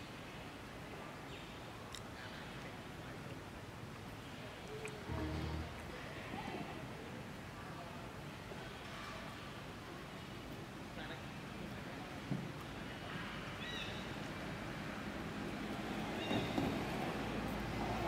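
A monkey licks and sucks on a lollipop.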